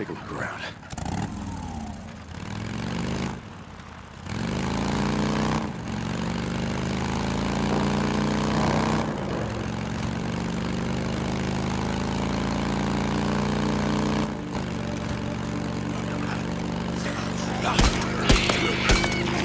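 A motorcycle engine rumbles and revs steadily.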